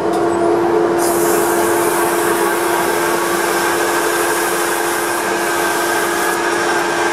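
Sandpaper hisses against spinning wood.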